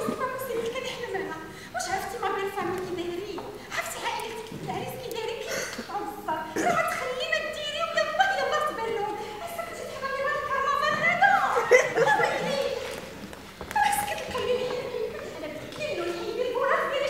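Young women speak with animation.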